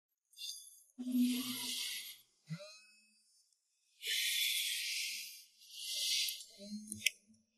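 A young man sighs and breathes heavily close by.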